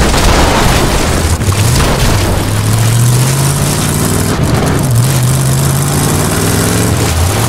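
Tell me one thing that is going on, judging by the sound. A car engine roars steadily, its pitch dipping and rising as it drives.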